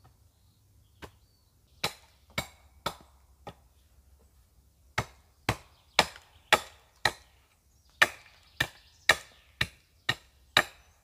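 A wooden mallet knocks a wooden stake into the ground with sharp, regular blows.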